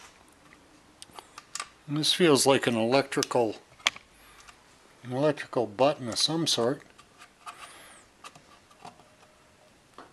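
A screwdriver clicks against small metal engine parts.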